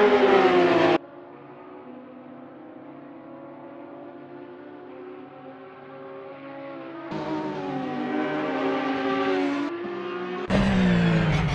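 Racing car engines hum from further away as cars pass.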